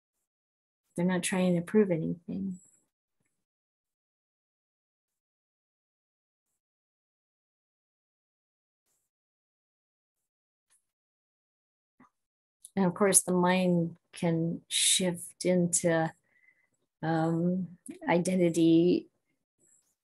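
A middle-aged woman speaks calmly and close up, heard through a microphone, with long pauses.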